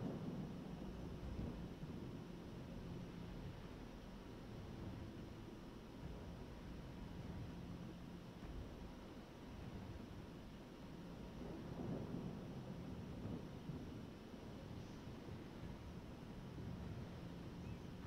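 Sea water washes softly against a ship's hull.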